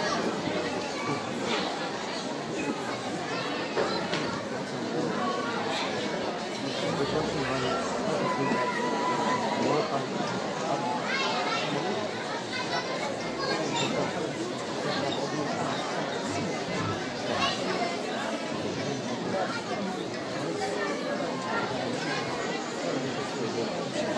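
A woman speaks with feeling through a loudspeaker in an echoing hall.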